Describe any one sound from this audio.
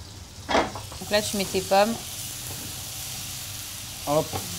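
Food sizzles in hot oil in a frying pan.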